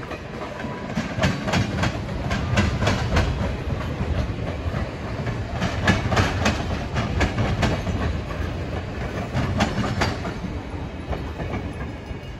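Railway carriages roll past, wheels clacking rhythmically over the rail joints.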